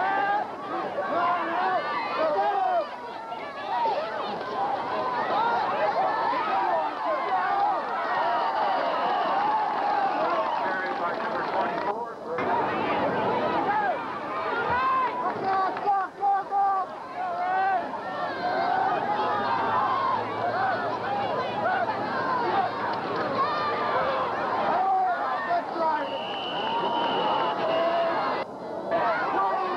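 A large crowd of spectators cheers and chatters outdoors.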